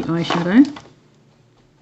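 A woman speaks briefly into a microphone, close by.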